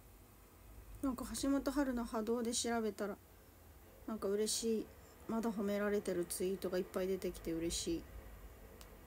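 A young woman speaks softly and close up.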